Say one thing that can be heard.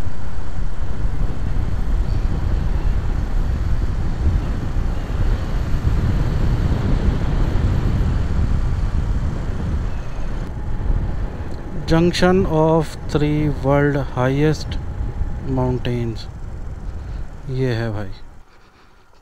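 Wind roars against a moving motorcycle.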